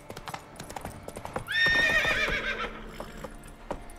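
Horse hooves clop on wooden planks.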